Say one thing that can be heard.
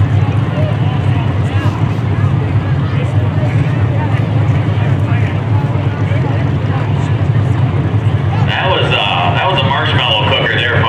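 An engine idles with a low, steady rumble.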